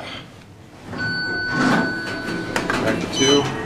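An elevator button beeps with a steady tone when pressed.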